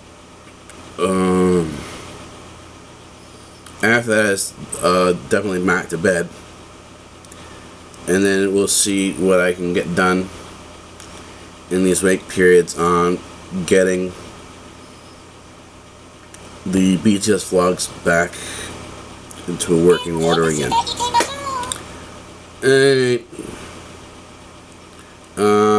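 A middle-aged man speaks calmly in short bursts, close to a microphone.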